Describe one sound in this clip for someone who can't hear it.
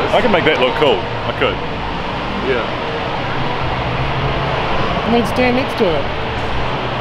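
A middle-aged man talks close to the microphone.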